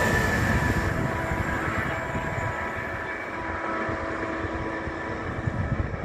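A distant train rumbles along the tracks.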